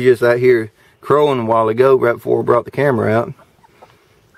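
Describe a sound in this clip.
A hen clucks close by.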